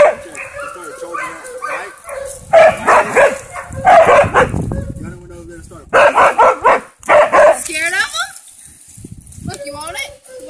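A dog whines and yelps.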